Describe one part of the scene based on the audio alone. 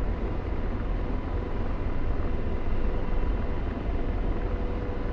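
A helicopter's rotor and engine drone steadily.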